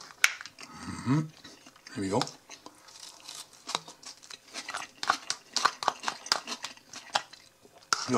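Shredded cabbage rustles and crunches as it is stirred.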